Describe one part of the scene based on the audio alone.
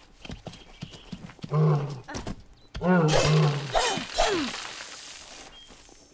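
A sword slashes and strikes an animal.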